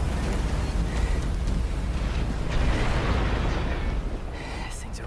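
Debris crashes and rumbles heavily.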